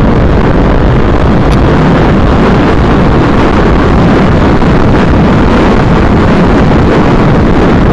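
Loud wind rumbles and buffets steadily.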